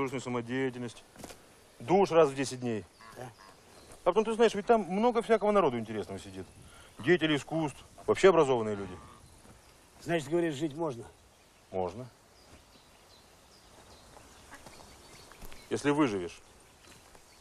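A middle-aged man speaks loudly and with animation, close by.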